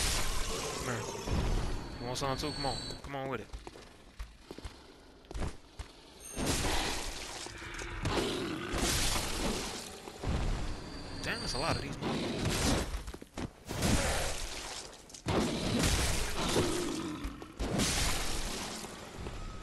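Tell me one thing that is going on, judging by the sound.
Blades slash and strike with wet, heavy thuds.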